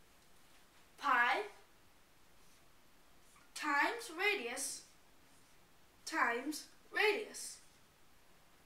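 A boy speaks calmly in short phrases.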